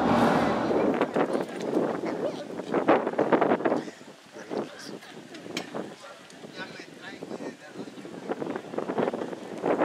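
People chatter in a crowd outdoors, some distance away.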